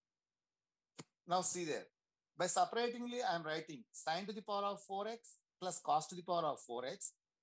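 A man explains calmly over an online call.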